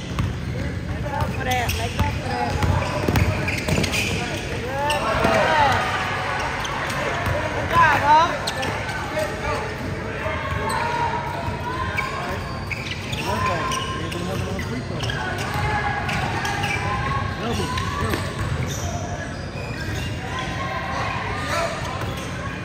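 Children shout and call out across the gym.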